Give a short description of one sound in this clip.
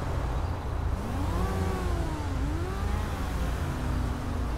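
A police siren briefly whoops.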